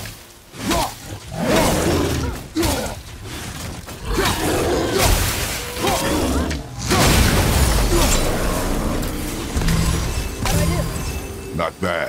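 Heavy blows and impacts thud and crash in a fight.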